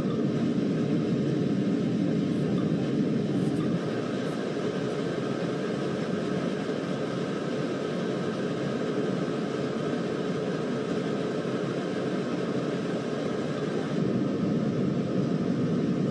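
A train engine rumbles steadily over the rails.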